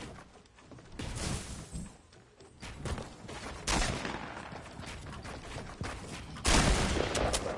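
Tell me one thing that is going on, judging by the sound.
Wooden panels snap into place with quick hollow knocks.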